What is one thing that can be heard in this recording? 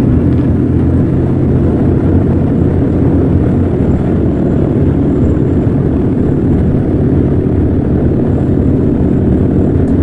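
A propeller engine roars loudly and steadily close by.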